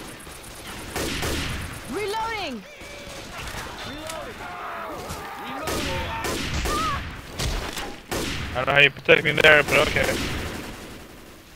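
A rifle fires loud shots again and again.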